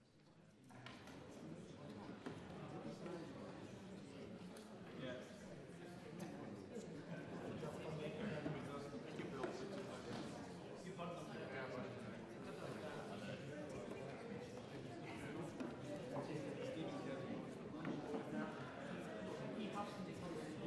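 Many people murmur and chatter in a large echoing hall.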